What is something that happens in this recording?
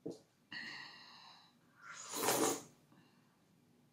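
A woman slurps soup from a bowl close to the microphone.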